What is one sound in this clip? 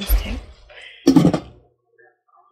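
A glass lid clinks onto a metal pot.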